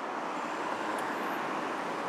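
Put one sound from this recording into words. A car drives past on a street.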